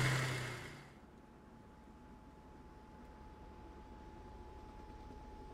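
A helicopter turbine starts up with a steady whine and a low hum that slowly grows.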